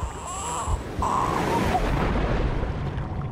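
Water splashes loudly as something plunges in.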